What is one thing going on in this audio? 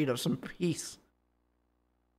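A young man speaks briefly into a close microphone.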